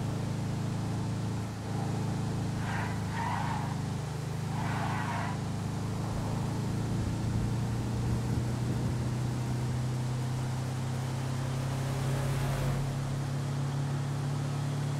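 A truck engine hums steadily as it drives along a road.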